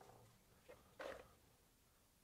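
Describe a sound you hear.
A plastic case is set down on a hard surface with a thud.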